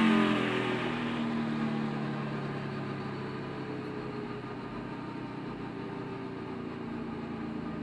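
A race car engine winds down and quiets as the car slows.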